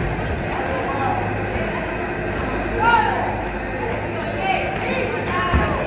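Spectators shout and cheer in a large echoing hall.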